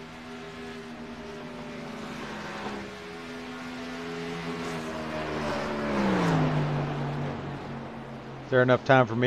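Racing truck engines roar steadily, their pitch rising and falling as they pass.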